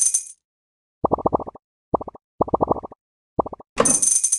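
Short game blips pop in quick bursts as balls stack up.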